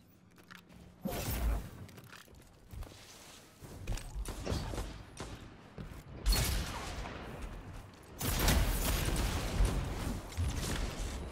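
Gunshots and blasts crackle loudly in a video game.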